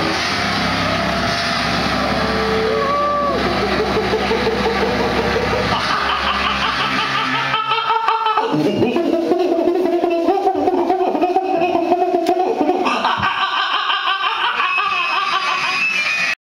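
A drum kit is played loudly with crashing cymbals.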